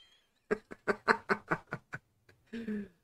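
A middle-aged man laughs heartily close to a microphone.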